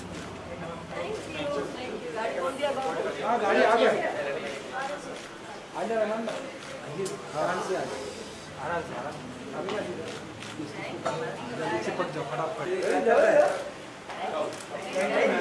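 A crowd of men and women chatter around.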